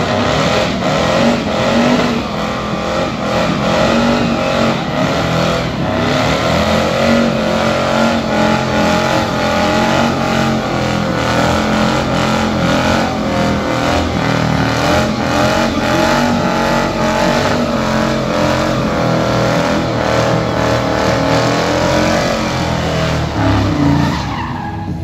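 Tyres squeal as they spin on pavement.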